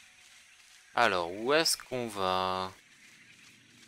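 A magical trail whooshes and chimes, swooping up and down in pitch.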